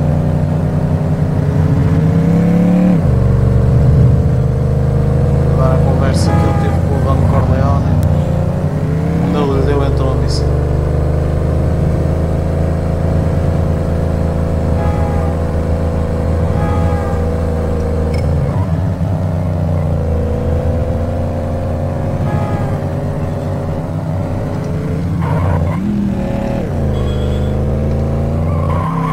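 A car engine hums steadily and shifts in pitch as gears change.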